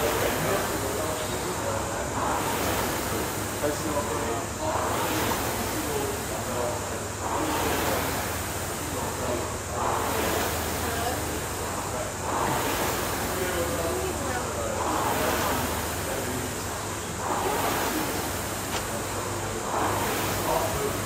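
The fan flywheel of an air rowing machine whooshes with each stroke.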